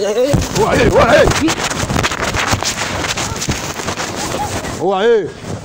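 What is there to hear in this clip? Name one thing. Footsteps run quickly across dry ground.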